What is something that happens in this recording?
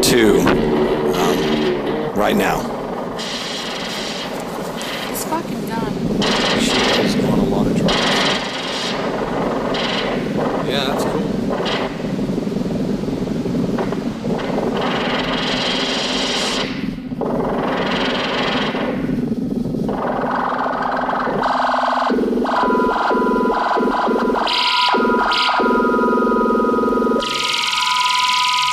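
A synthesizer plays shifting electronic tones.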